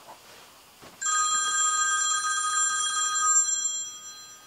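A mobile phone rings with a bright chiming tone.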